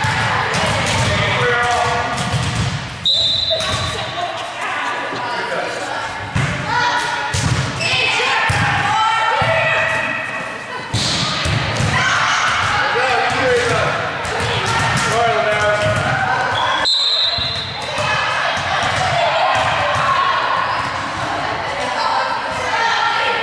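A volleyball is struck with sharp slaps again and again.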